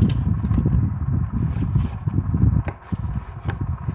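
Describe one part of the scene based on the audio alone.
Stiff cardboard rustles and slides over paper.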